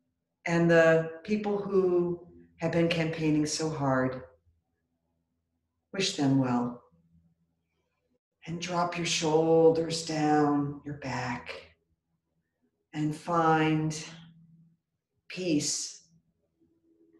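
A middle-aged woman speaks calmly and clearly, close by, pausing between phrases.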